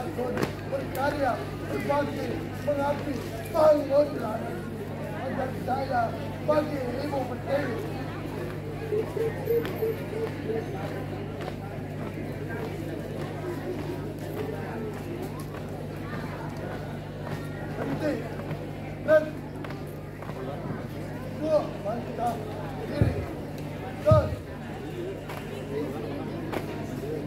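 A crowd of people chatters in the background outdoors.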